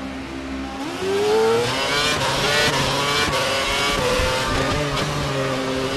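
A racing car engine whines loudly, revving up and shifting through gears.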